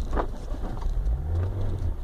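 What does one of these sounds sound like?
A windscreen wiper sweeps across the glass.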